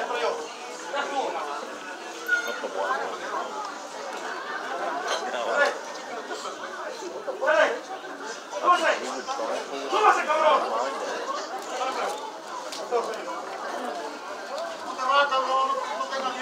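A crowd of spectators chatters and calls out nearby in an echoing hall.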